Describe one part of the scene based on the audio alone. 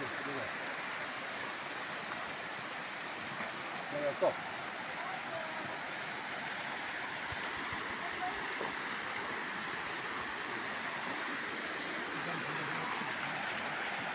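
Water splashes and trickles steadily down rocky cascades outdoors.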